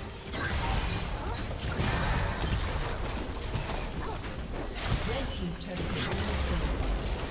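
Game characters clash with sharp hits and impacts.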